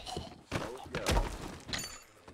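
A man thuds onto the ground.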